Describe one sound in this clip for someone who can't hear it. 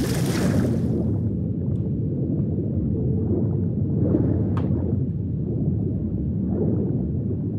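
Muffled, low underwater rumbling fills the sound.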